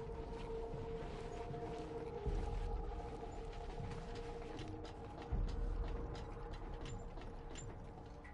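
Footsteps crunch on sand and dirt.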